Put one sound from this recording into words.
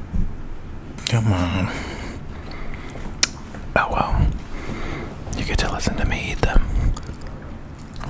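A man whispers softly close to a microphone.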